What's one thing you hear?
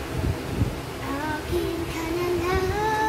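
A young girl sings close by in a high voice.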